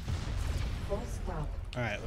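A large explosion booms.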